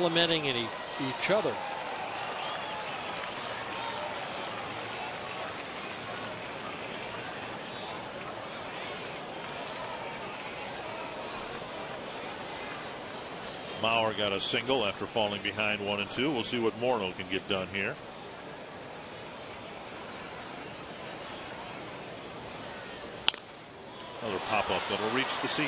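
A stadium crowd murmurs.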